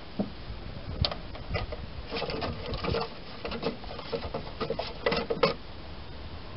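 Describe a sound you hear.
A brush knocks and scrapes against the rim of a metal can.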